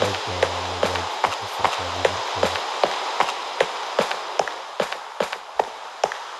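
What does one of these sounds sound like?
Footsteps tap on stone at a quick, steady pace.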